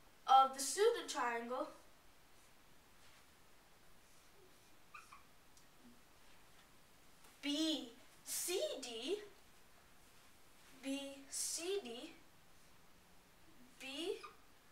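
A boy speaks calmly, explaining in short phrases.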